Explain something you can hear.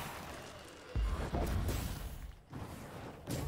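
A deep rumbling boom erupts.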